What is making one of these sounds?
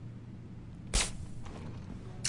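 A gun fires a single sharp shot.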